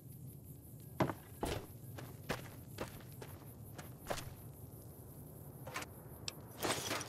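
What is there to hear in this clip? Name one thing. Footsteps crunch on dry gravel.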